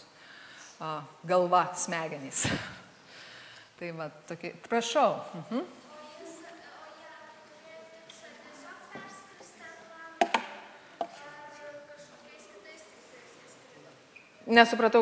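A woman speaks calmly through a microphone and loudspeakers in a large, echoing hall.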